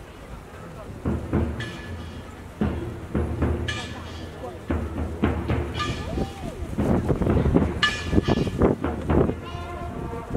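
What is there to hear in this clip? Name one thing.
A marching drumline beats loudly outdoors.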